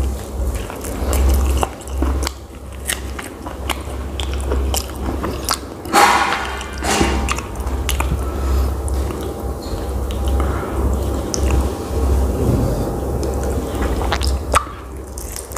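A man bites into crunchy food with a loud crunch.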